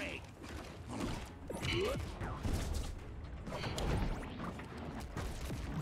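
Game attacks land with punchy hits and whooshes.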